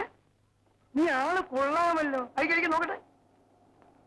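An elderly man speaks loudly in drawn-out, wavering tones.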